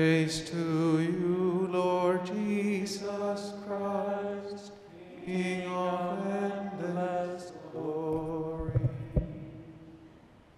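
A woman sings into a microphone in a large echoing hall.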